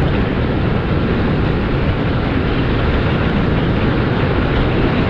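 A vehicle drives steadily over loose sand, its tyres rumbling.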